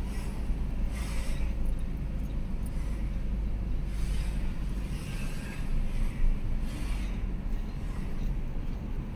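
A car engine rumbles steadily from inside the car as it drives along a road.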